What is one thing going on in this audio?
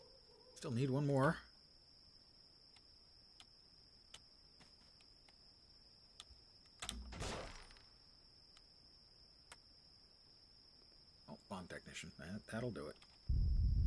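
An elderly man speaks calmly into a microphone, now and then.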